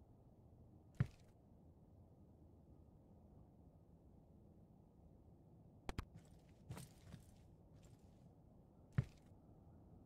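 A piece of wooden furniture is set down with a short thud.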